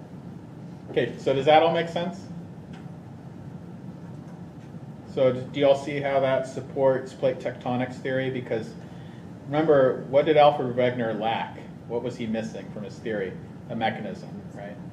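A man lectures calmly into a microphone.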